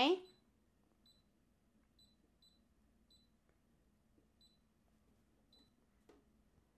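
A sewing machine gives short, soft beeps as its buttons are pressed.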